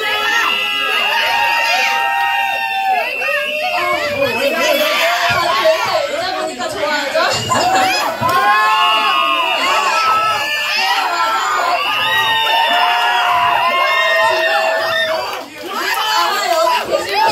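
Loud pop music with a singing voice plays over loudspeakers.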